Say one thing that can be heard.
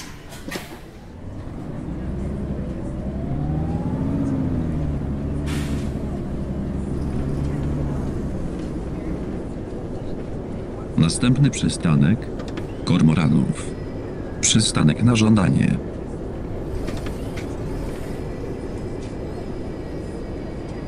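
A bus engine revs up and hums steadily as the bus drives along.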